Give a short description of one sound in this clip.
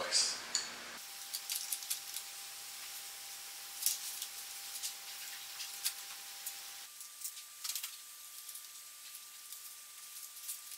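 Small wooden parts click and tap together as they are fitted by hand.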